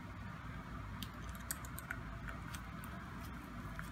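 Small metal tools click and tick against a reel.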